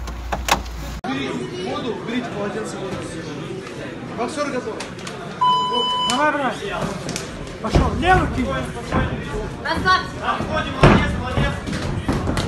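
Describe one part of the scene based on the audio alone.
A crowd of people shouts and cheers in an echoing hall.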